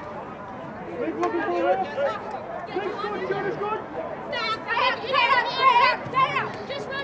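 Young women shout and call to each other outdoors.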